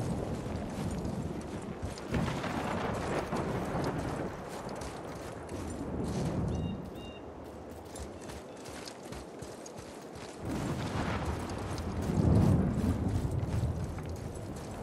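Heavy footsteps crunch through snow.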